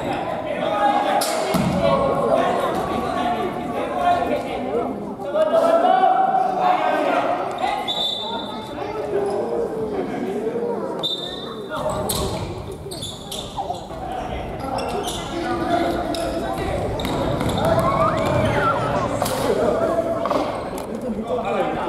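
A ball thuds as it is kicked on a hard floor.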